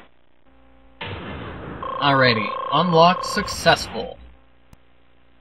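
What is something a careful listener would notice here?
A bright electronic jingle rings out with rising and falling tones.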